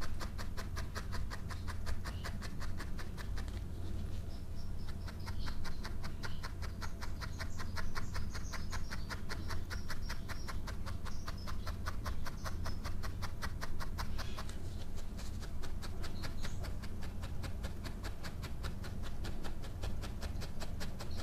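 A felting needle pokes rapidly and steadily into wool with quick, soft taps.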